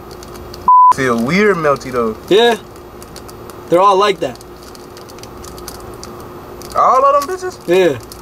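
A man speaks with animation close by, in short bursts.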